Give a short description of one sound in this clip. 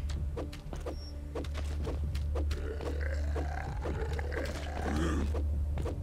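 Gunshots fire in quick bursts in a video game.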